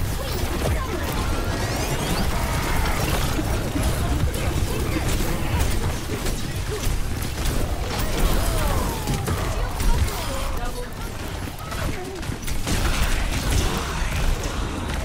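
Explosions boom with deep rumbles.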